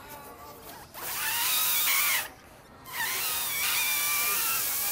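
A boy blows hard into a bottle.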